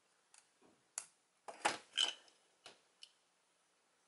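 Small plastic toy parts click and snap as they are fitted together.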